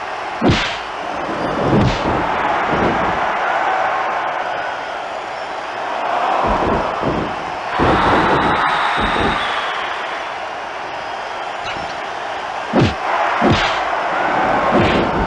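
A crowd cheers steadily throughout.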